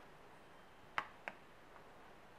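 A pen taps lightly onto a notebook.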